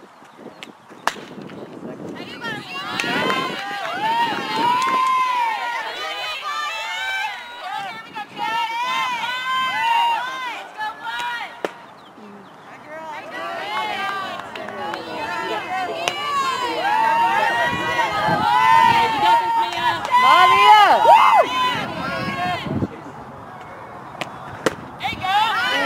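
A softball smacks into a catcher's mitt with a sharp pop.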